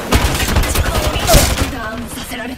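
Gunfire crackles in rapid bursts.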